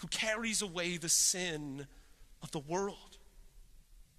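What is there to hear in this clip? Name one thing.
A man speaks with animation through a microphone in a large echoing room.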